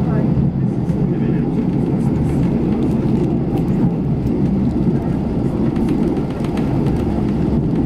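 Train wheels click and clatter over the rails.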